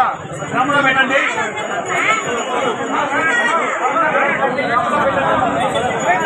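An elderly man talks close to a microphone.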